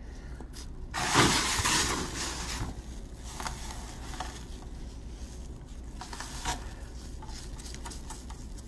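Loose grit patters and hisses as it is brushed off onto a hard countertop.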